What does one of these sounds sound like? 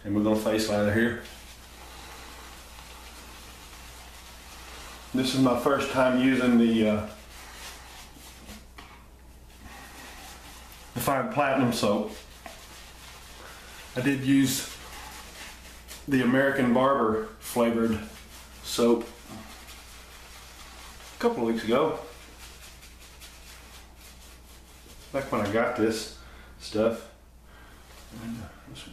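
A shaving brush swishes softly on a man's face.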